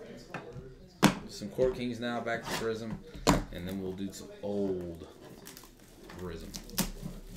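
Plastic wrapping crinkles as hands tear open a card pack.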